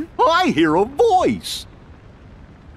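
A young man calls out excitedly.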